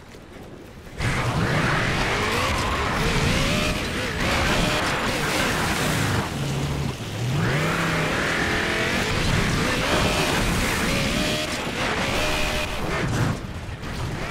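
A vehicle engine rumbles and revs.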